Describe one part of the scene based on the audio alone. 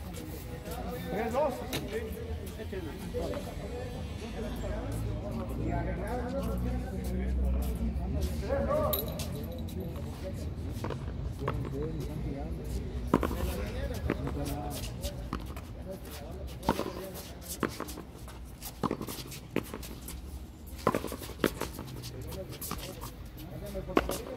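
A ball smacks against a wall again and again, echoing off high walls.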